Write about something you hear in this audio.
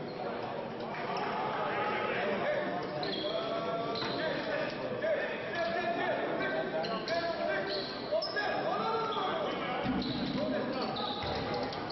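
Players' shoes squeak on a hard court in a large echoing hall.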